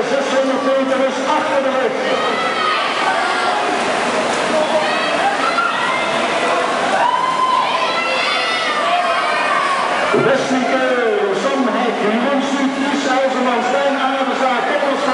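Swimmers splash through water.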